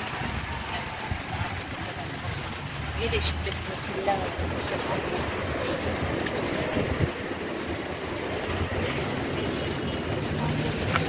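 Footsteps tap on paving stones close by.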